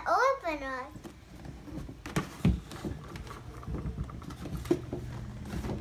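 A cardboard box rustles and thumps as a young girl handles it.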